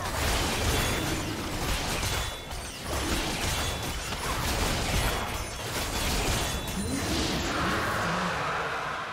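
Spell effects crackle and whoosh in a video game battle.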